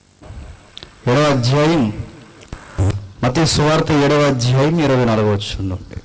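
A young man speaks loudly into a microphone over a loudspeaker.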